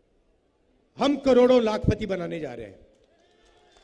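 A man speaks forcefully into a microphone through loudspeakers.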